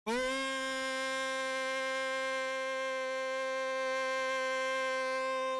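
A middle-aged man chants one long, steady note into a microphone, close by.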